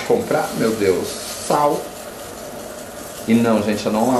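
Dry pasta pours into a pot of water.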